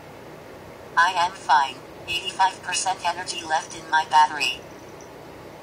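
A synthetic voice replies through a small phone speaker.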